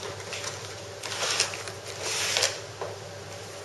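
Cardboard packaging rustles and scrapes as hands pull an item out.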